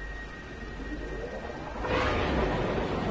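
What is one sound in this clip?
A spaceship engine whooshes up in pitch as it lifts off.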